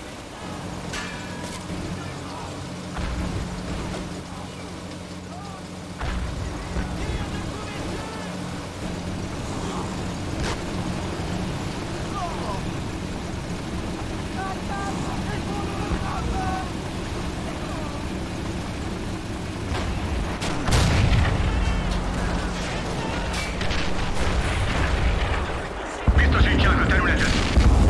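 Tank guns fire with sharp booms.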